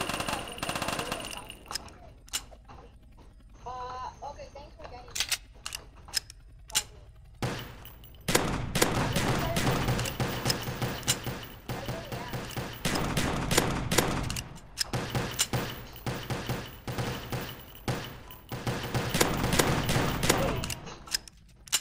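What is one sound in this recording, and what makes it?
Video game guns fire in rapid, loud bursts.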